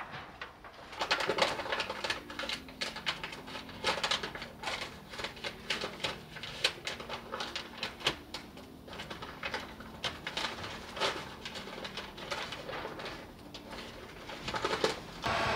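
A staple gun snaps sharply again and again.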